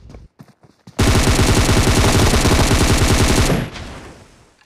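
A rifle fires a loud, rapid burst close by.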